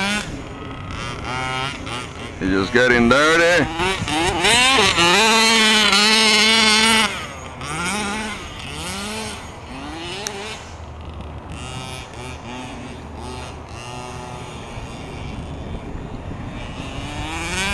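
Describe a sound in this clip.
The two-stroke petrol engine of a large radio-controlled buggy revs up and down, loudest as it passes close by.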